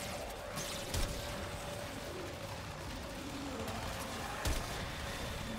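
Sharp gunshots crack now and then.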